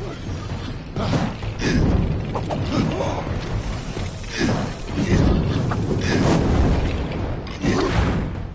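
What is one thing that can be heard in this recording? Fiery explosions burst and roar in quick succession.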